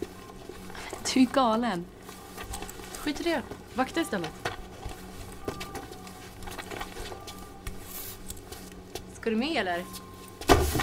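A young woman speaks quietly nearby.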